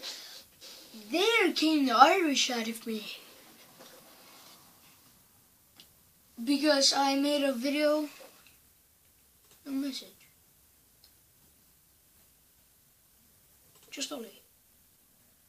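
A boy speaks with animation close to a microphone, in short bursts.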